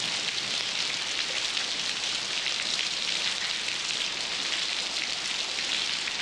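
Rain falls steadily on a tiled roof outdoors.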